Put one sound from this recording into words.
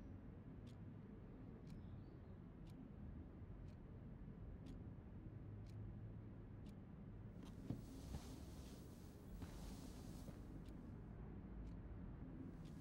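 A heart monitor beeps steadily about once a second.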